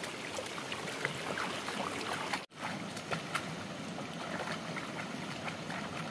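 Hands splash in shallow water.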